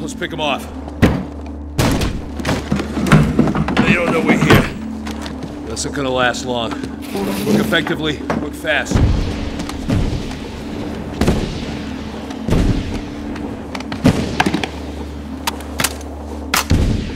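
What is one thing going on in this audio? A rifle and gear knock on a wooden table.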